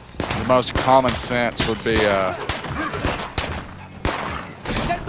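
Gunshots fire in quick bursts nearby.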